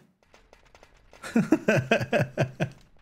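A man laughs.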